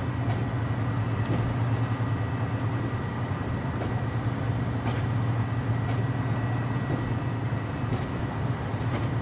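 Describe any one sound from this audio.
A train's motor hums steadily as it runs along the track.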